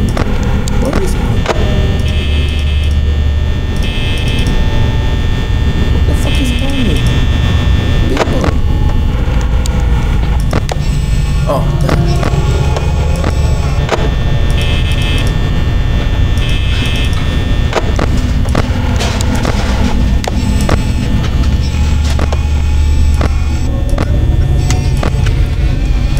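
Static hisses and crackles in bursts.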